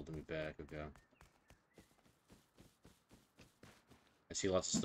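Footsteps crunch quickly through grass and over stones.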